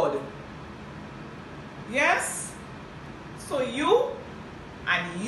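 A middle-aged woman speaks close up in short, emphatic bursts.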